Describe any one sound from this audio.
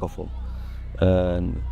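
A young man speaks briefly close by.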